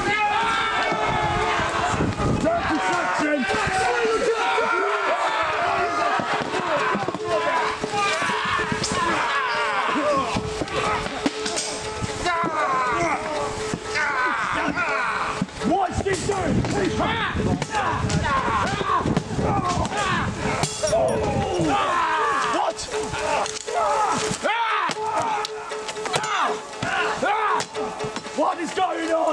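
Weapons clash and knock against wooden shields.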